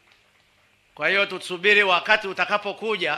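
An elderly man speaks loudly into a microphone, heard over loudspeakers.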